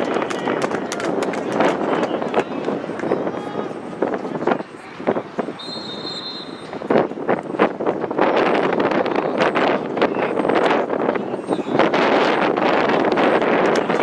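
Lacrosse sticks clack and knock against each other.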